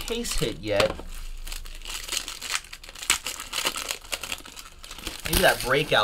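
A plastic wrapper crinkles and tears as it is opened.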